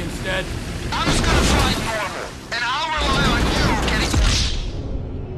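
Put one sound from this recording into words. Water splashes heavily as a plane crashes into it.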